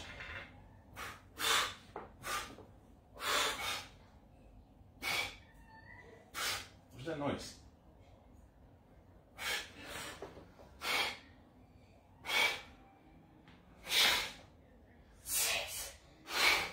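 A man exhales sharply with each lift.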